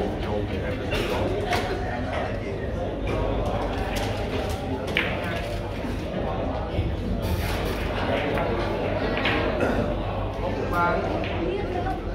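Billiard balls click together on a table.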